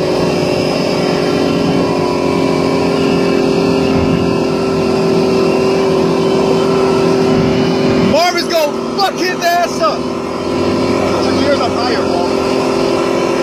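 A sports car's engine roars loudly close by.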